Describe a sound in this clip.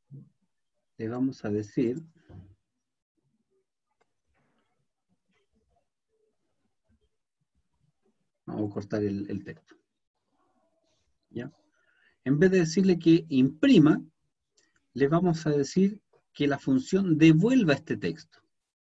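A man talks calmly into a microphone, in bursts with pauses.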